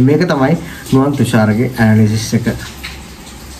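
A young man speaks calmly and close to a clip-on microphone.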